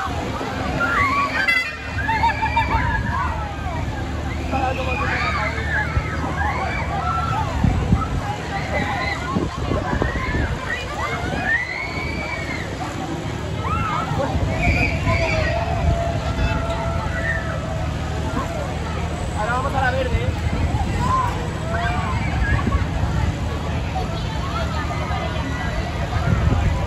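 Riders scream and shriek on a spinning fairground ride.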